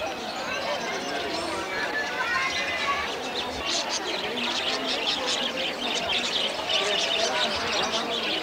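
A crowd of people murmurs and chatters nearby.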